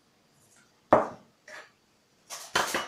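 A spoon knocks against a metal pot.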